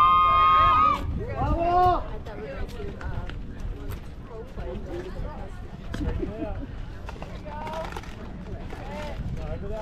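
Young women call out and chatter across an open field.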